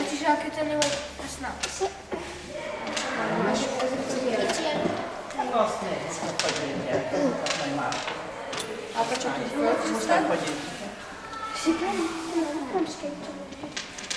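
Children talk and chatter close by, several voices overlapping.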